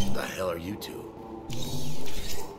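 A man speaks with surprise, close to the microphone.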